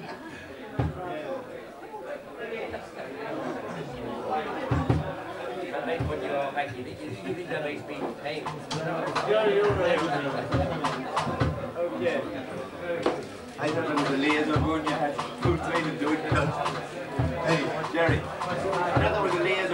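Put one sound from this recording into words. A live band plays rock music.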